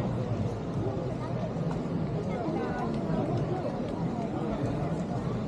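A crowd of men and women chatters in the open air.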